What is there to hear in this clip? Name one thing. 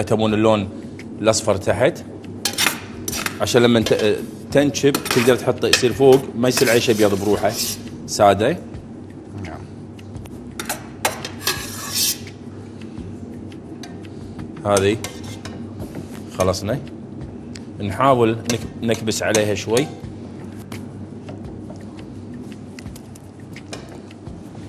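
A metal spoon scrapes and stirs rice in a pot.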